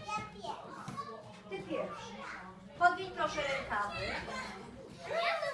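Young children chatter and call out.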